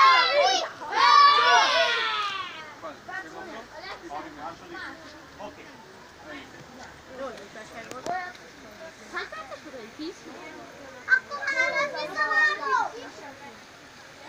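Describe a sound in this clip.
Boys shout excitedly nearby.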